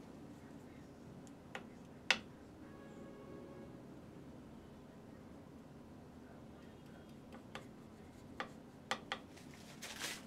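A paintbrush brushes and scrapes softly against canvas.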